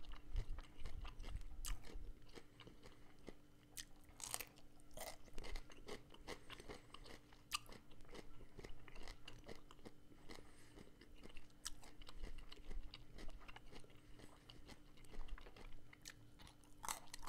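A man chews food wetly, close to a microphone.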